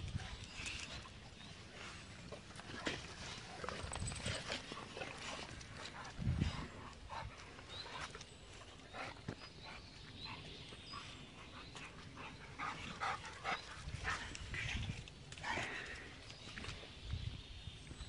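Dogs pant and sniff close by.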